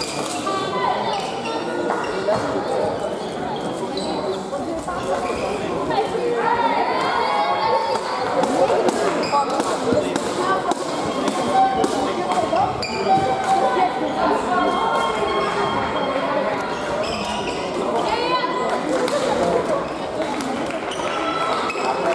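Shuttlecocks are struck with rackets, with sharp pops.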